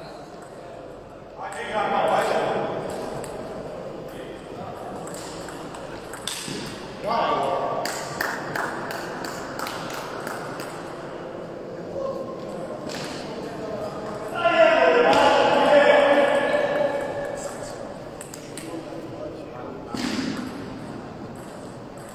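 A ping pong ball clicks back and forth off paddles and a table in a large echoing hall.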